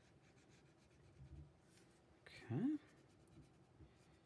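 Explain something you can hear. A crayon scratches softly on paper.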